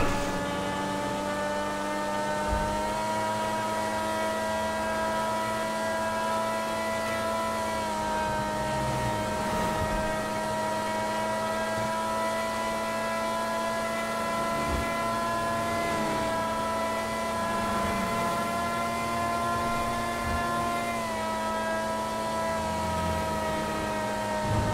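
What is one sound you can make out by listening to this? A sports car engine drones at high speed with a steady whine.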